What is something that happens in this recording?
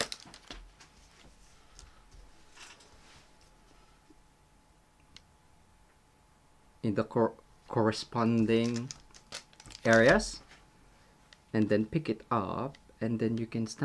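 Paper rustles softly as hands handle it.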